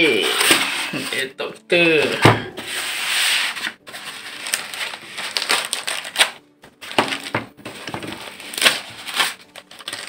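Foam packing pieces squeak and rub.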